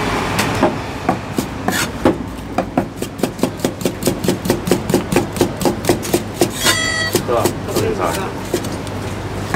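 A cleaver chops quickly and repeatedly on a wooden block.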